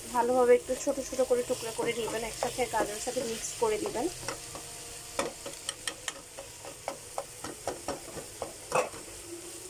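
A metal spatula scrapes and taps against a wok while stir-frying rice and vegetables.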